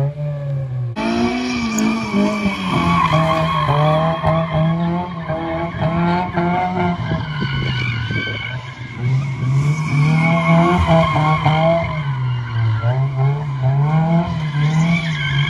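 Tyres squeal on pavement as a car drifts.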